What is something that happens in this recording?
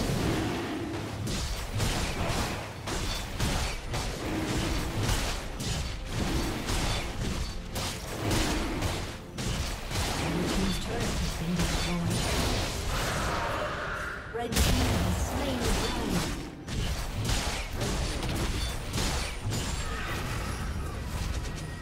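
Fantasy battle effects crackle, whoosh and thud in quick succession.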